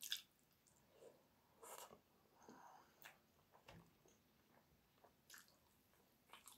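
A woman eats close by, with wet chewing and smacking sounds.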